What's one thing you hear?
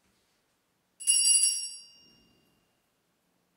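A laptop gives a short, bright chime that rings out and fades.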